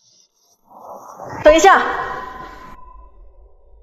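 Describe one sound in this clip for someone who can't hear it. A woman speaks coolly and briefly.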